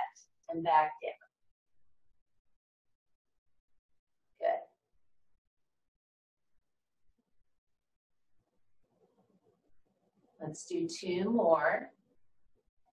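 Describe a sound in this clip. An older woman speaks calmly in short phrases, close by.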